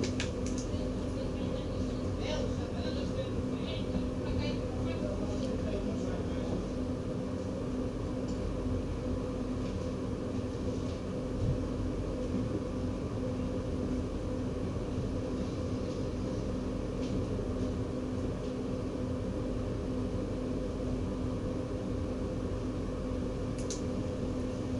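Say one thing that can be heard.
A train's engine hums steadily at idle, close by.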